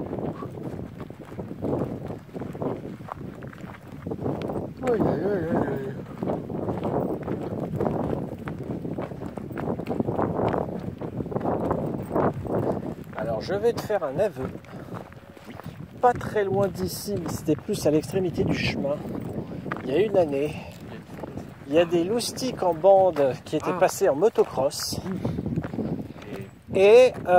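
Footsteps crunch on a dry gravel path.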